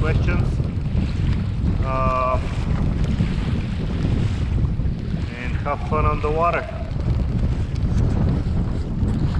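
Choppy waves slap and splash against the hull of a small boat.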